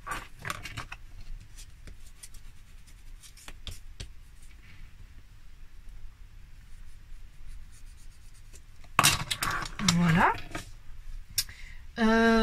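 Small tools click and tap on a hard surface.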